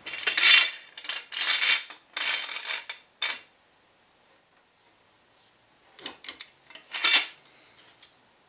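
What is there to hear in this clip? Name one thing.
A metal clamp's screw grinds and scrapes as it is tightened in short bursts.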